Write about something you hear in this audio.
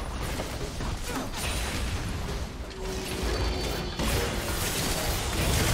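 Game spell effects and combat sounds clash and burst.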